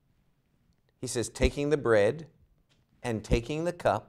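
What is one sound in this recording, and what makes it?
An elderly man speaks clearly and with emphasis into a microphone.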